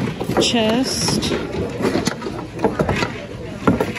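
A wooden box lid creaks open and knocks shut.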